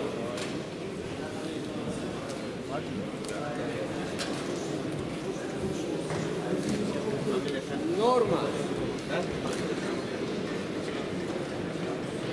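A crowd of men murmurs and chatters in a large echoing hall.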